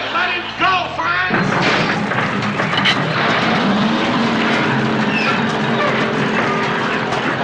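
A band plays a blues tune on electric guitars.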